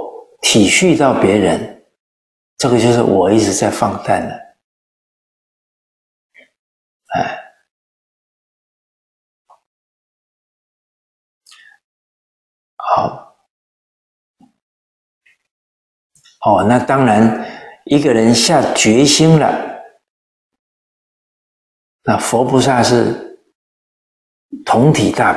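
An elderly man speaks calmly and clearly into a microphone, in short phrases with long pauses.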